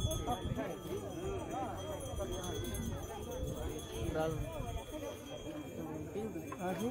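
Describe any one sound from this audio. A crowd of men and women talk and call out all at once outdoors.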